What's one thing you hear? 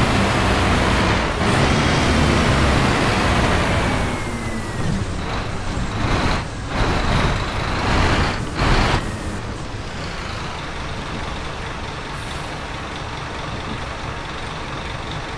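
Heavy rain patters on a windshield.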